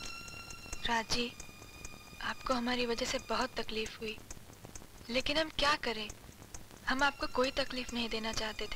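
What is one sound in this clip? A man reads a letter aloud in a low voice.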